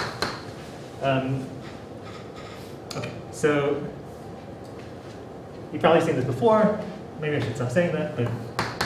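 A man speaks calmly, slightly muffled.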